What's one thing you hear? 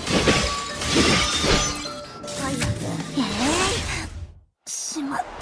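Blades clash in quick, sharp hits.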